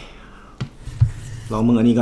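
A knife cuts through dried meat on a wooden board.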